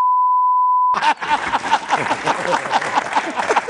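Two men laugh loudly.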